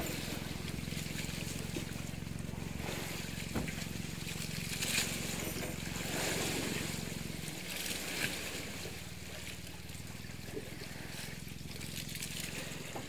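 Sea waves wash and splash steadily outdoors.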